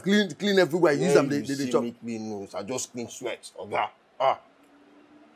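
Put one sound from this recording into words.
A man speaks with animation close by.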